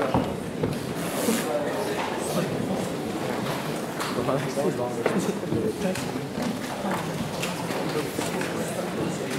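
Women sing together in a large echoing hall.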